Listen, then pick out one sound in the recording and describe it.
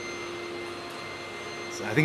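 A vacuum cleaner hums steadily.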